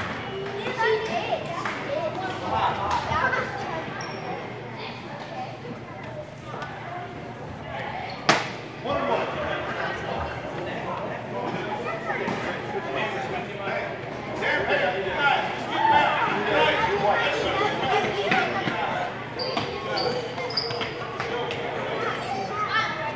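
Children and adults talk and call out across a large echoing gym.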